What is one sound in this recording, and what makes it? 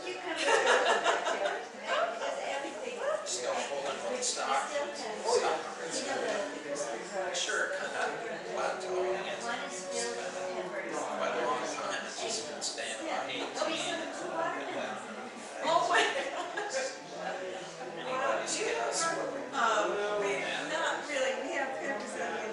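A man close by talks casually.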